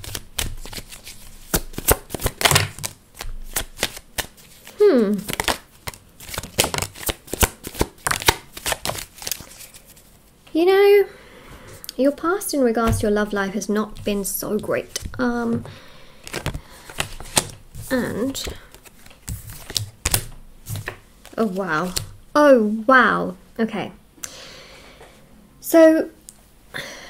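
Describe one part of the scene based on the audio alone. Playing cards slap and slide onto a wooden table.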